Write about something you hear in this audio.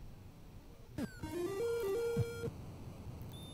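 A retro video game plays a short electronic jingle.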